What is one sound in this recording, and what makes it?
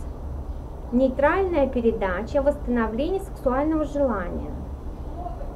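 A woman reads aloud calmly, close to the microphone.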